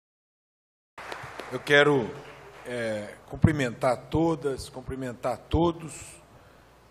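A middle-aged man speaks with animation into a microphone in a large echoing hall.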